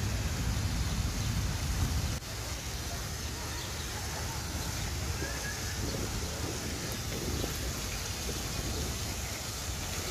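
Water from a fountain splashes steadily in the distance.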